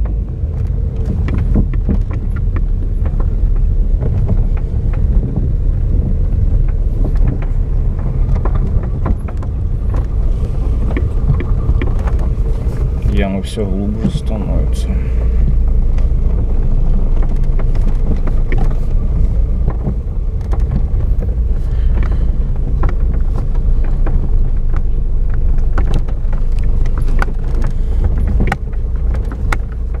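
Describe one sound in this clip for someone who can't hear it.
Tyres rumble and thump over a rough, bumpy road.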